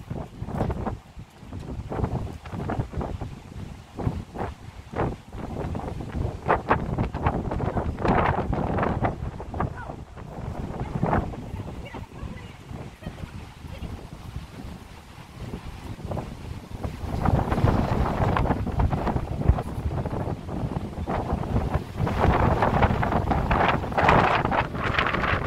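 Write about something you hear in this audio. Wind gusts loudly outdoors.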